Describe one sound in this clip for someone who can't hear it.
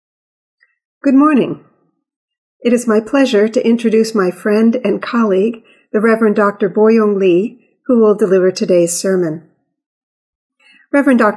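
An older woman speaks calmly and warmly into a microphone.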